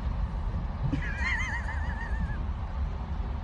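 A cat gives a warbling trill.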